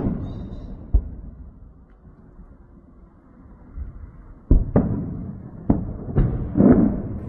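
Explosions boom in the distance, one after another.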